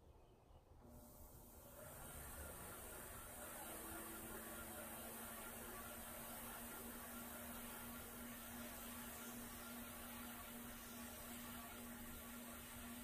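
A pottery wheel motor hums steadily.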